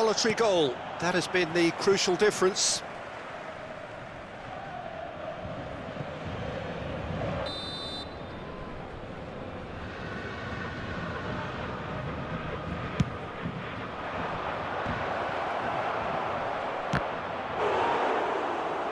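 A large crowd roars steadily in a stadium, swelling louder toward the end.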